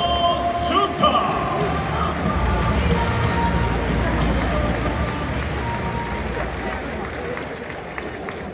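A large stadium crowd murmurs and cheers, echoing around an indoor hall.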